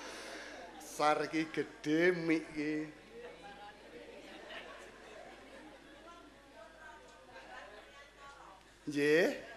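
A man speaks or chants through a microphone in a reverberant hall.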